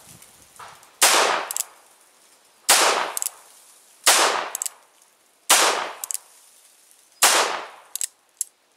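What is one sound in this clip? A .38 Special revolver fires shots outdoors.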